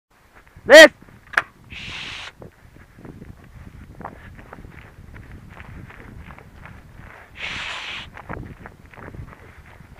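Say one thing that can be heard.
Footsteps swish through grass close by.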